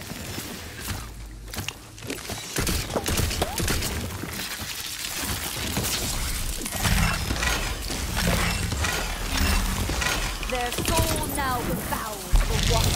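Rapid gunfire crackles and bangs.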